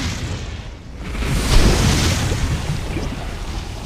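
Fire roars with a deep rumble.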